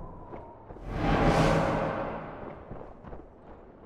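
A soldier runs through grass with quick footsteps.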